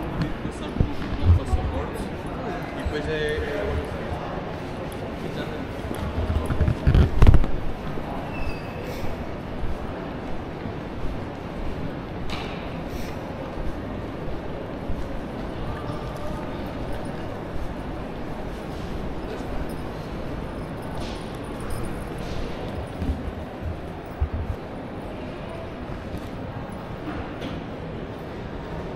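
Distant voices murmur in a large echoing hall.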